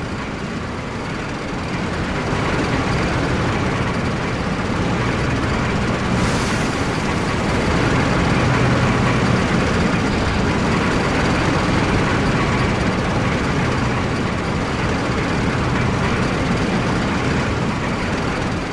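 Tank engines rumble and tracks clatter as a column of tanks rolls forward.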